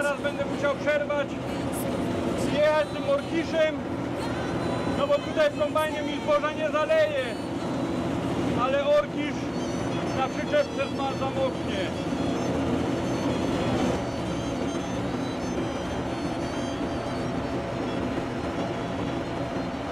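A combine harvester engine drones steadily in the distance.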